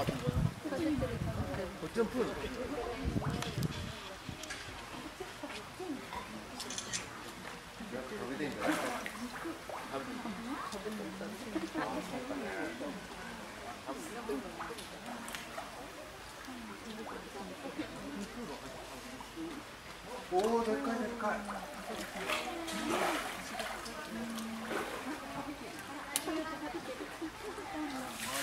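Water sloshes and laps as a bear swims.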